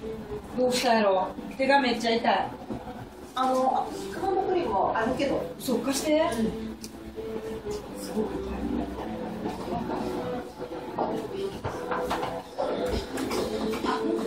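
Puppies yip and whine as they play.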